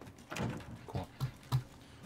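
A locked door rattles.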